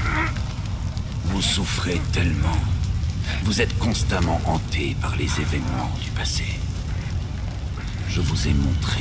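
An elderly man speaks slowly and menacingly.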